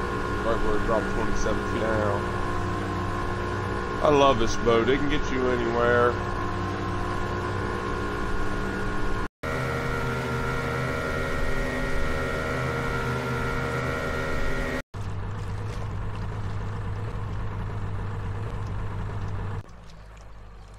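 Water churns and sprays behind a speeding boat.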